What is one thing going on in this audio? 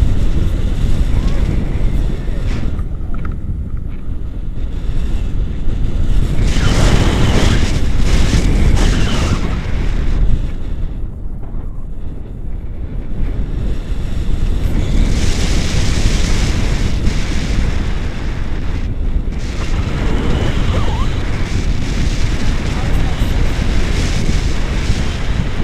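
Wind rushes and buffets loudly against a microphone, rising and falling in gusts.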